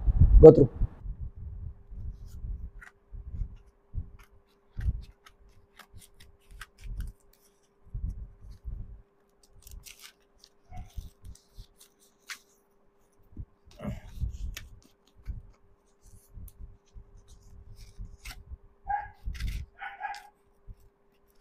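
Brown paper wrapping crinkles and rustles.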